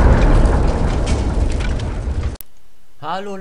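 Pieces of something shatter and tumble with a loud rushing crash.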